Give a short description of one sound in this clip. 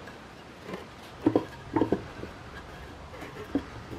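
Wooden boards knock together on a workbench.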